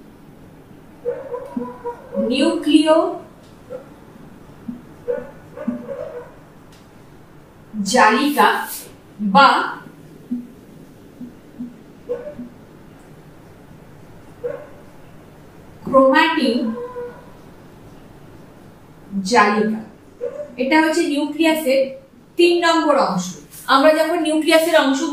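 A woman speaks calmly and clearly, close by, in short bursts.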